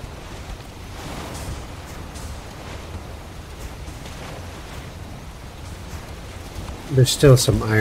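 Waves wash against a wooden boat.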